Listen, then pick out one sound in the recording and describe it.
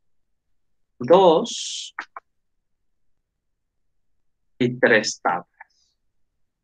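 A man speaks calmly into a microphone, heard over an online call.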